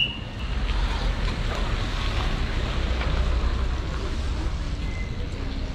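Rain falls steadily on a wet street.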